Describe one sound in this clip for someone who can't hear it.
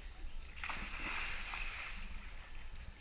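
Water splashes as a swimmer plunges into a pool.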